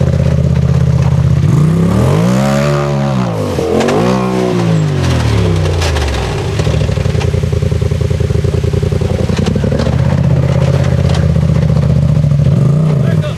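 An off-road vehicle's engine revs hard, rising and falling in pitch.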